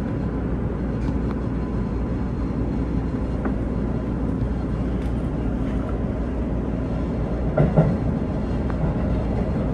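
Train wheels clatter and knock over rail joints.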